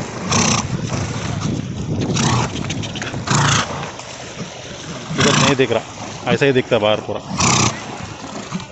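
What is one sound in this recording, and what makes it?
A horse snorts and blows hard as it swims.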